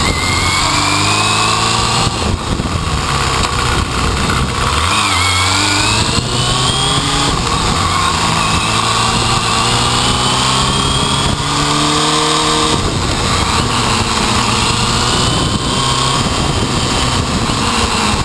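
A motorcycle engine runs loud and close, its pitch rising and falling as it speeds up and shifts gears.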